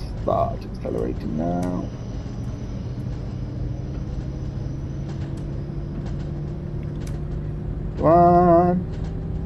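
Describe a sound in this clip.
A train engine hums steadily while rolling along the track.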